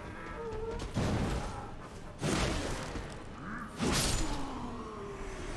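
A sword slashes and strikes with heavy whooshing blows.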